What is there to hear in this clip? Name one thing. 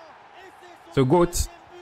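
A young man shouts loudly and excitedly.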